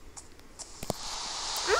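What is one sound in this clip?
Rain starts to fall with a soft steady hiss.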